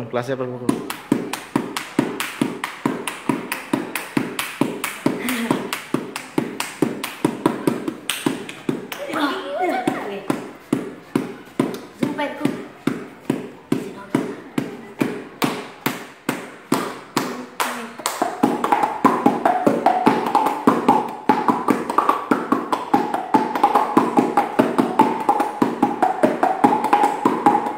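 Young boys beatbox a fast, steady rhythm with their mouths close by.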